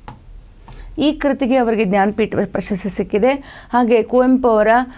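A young woman speaks clearly and with animation into a close microphone.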